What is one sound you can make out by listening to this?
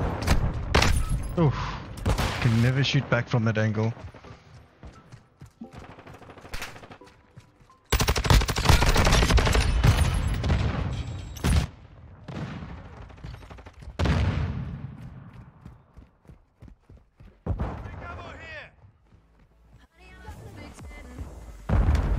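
Rapid gunfire bursts sound loudly.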